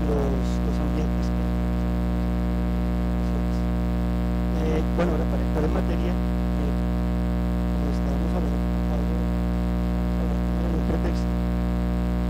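A man speaks into a microphone over a loudspeaker, muffled under a loud steady hum.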